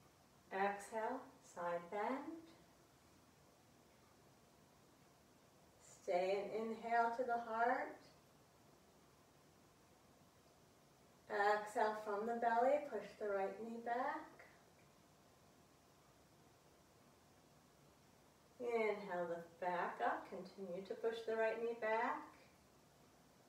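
A woman speaks calmly nearby, in short phrases with pauses.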